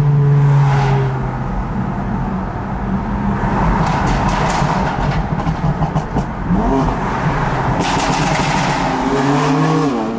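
A car engine hums and revs, heard from inside the cabin.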